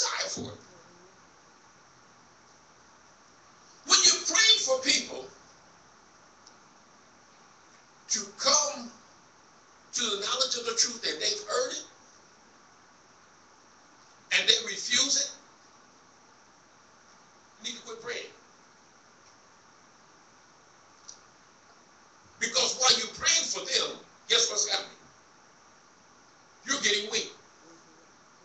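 A man preaches into a microphone in short, forceful bursts with pauses between, heard through a loudspeaker in an echoing hall.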